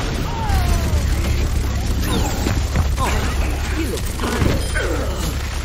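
A heavy rotary gun fires a rapid, rumbling stream of shots.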